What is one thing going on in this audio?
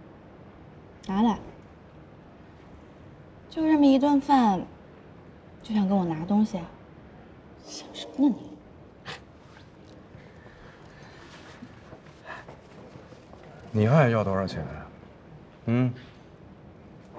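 A young woman speaks teasingly nearby.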